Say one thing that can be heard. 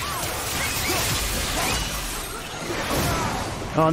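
Heavy blows crash and thud.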